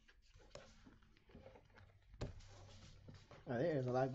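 Paper booklets slide and rustle as a hand shuffles them.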